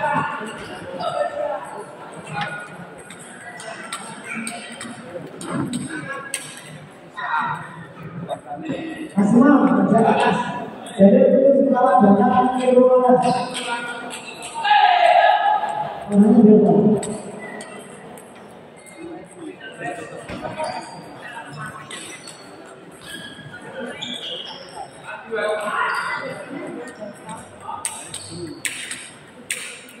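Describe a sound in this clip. A crowd of people chatter in an echoing hall.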